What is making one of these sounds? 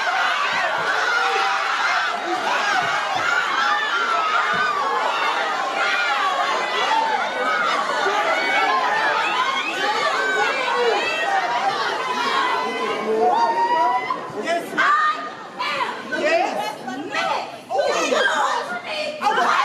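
A large crowd of young women cheers and shouts loudly in an echoing hall.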